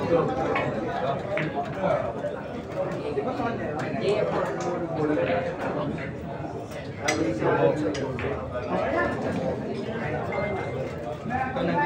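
A crowd of young men chatters nearby.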